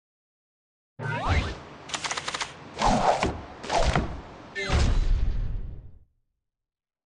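Short whooshing logo sounds play.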